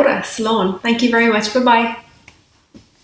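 A young woman speaks warmly and clearly into a microphone, close by.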